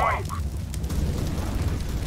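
Flames crackle and roar close by.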